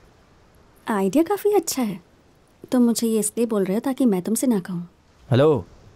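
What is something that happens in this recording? A young woman speaks calmly and firmly, close by.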